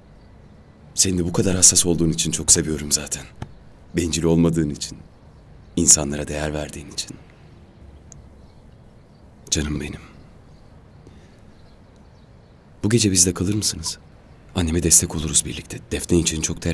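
A young man speaks softly, close by.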